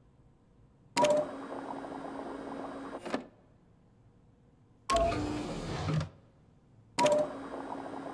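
A machine clicks.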